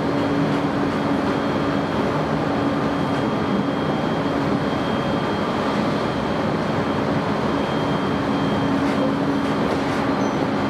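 An electric train rolls along at speed, heard from inside a carriage.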